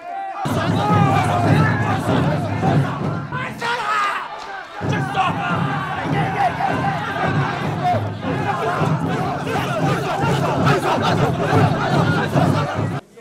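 A large crowd of men shouts and chants loudly outdoors.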